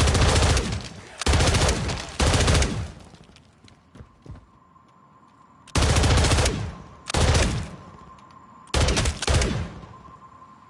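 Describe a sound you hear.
Bursts of automatic rifle fire ring out loudly, each trailing off in an echo.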